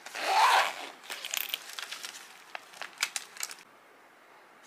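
A fabric pouch rustles and clicks as hands open it.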